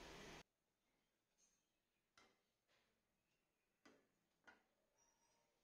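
A metal pan clinks down onto a wire rack.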